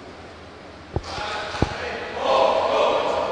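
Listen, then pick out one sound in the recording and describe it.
A group of young men chatter together in a large echoing hall.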